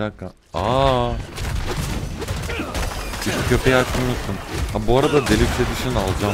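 Spells crackle and blast during a fight in a video game.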